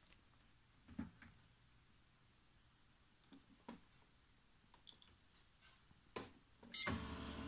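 Buttons on a copier keypad click.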